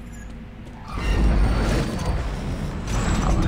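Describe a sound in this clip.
A heavy stone door grinds and rumbles open.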